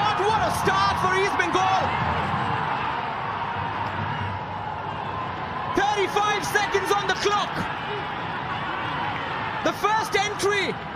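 A stadium crowd cheers and roars steadily.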